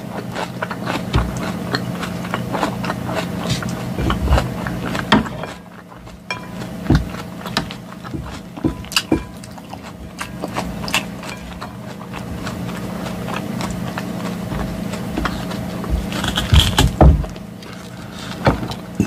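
A fork scrapes and clinks against a glass bowl.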